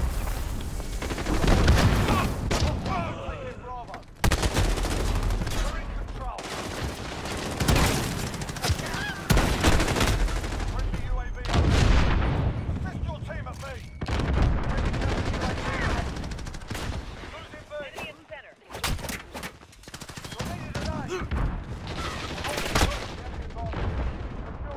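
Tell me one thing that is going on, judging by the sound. Rapid gunfire cracks out in short bursts.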